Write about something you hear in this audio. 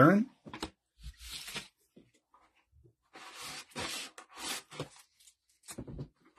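Plastic card holders rustle and tap against each other as they are handled.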